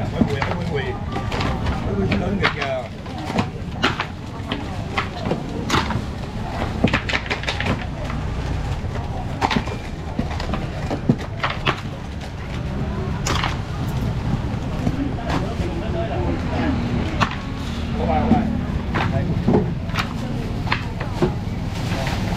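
Plastic bags rustle and crinkle nearby.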